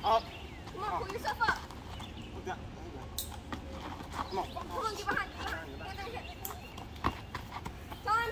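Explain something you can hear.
Teenagers shout and laugh nearby outdoors.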